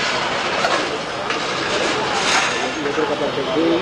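A metal barrier clatters as a man drags it.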